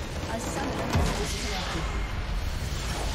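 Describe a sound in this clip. A large structure explodes with a deep, rumbling boom.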